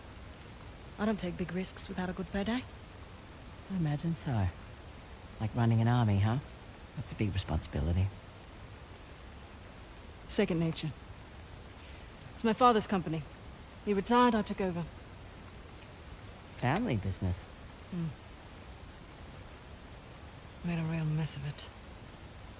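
Another young woman answers in a low, even voice, close by.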